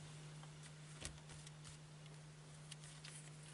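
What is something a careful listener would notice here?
Cards softly rustle and click as a hand handles a deck.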